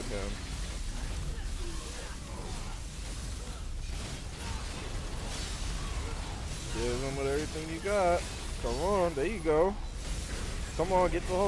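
Blades slash and clang in a rapid fight.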